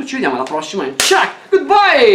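A clapperboard snaps shut with a sharp clack.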